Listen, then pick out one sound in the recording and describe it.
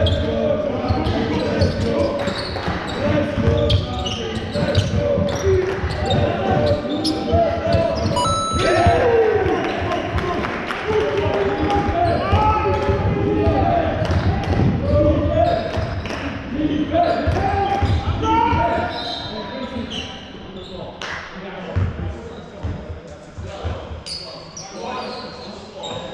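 Men shout and call out to each other across the hall.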